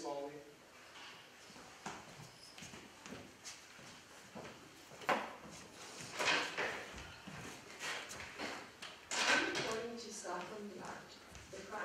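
Footsteps thud across a wooden floor.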